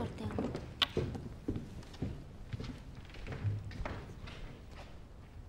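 Footsteps thud on a wooden stage floor.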